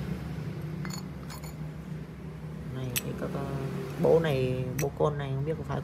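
Metal parts clink together as they are handled.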